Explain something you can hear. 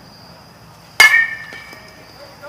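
A metal bat strikes a ball with a sharp ping.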